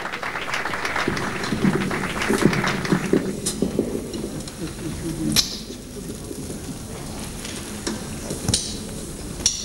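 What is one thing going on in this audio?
A saxophone plays a jazz melody.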